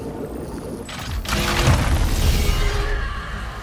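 A cloud of gas bursts out with a loud rushing hiss.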